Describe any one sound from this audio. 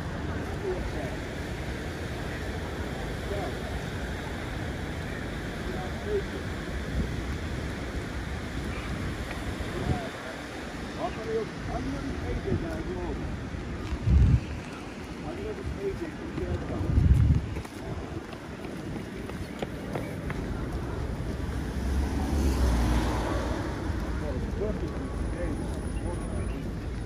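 Footsteps tread on a wet pavement outdoors.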